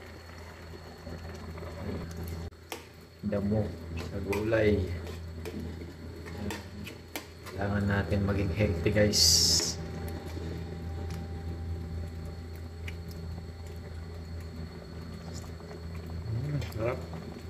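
Food simmers and bubbles in a pan.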